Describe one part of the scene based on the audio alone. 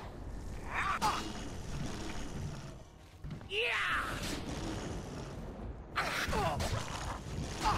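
A blade swings and strikes with sharp clanks.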